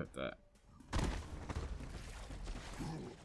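Footsteps thud on rocky ground.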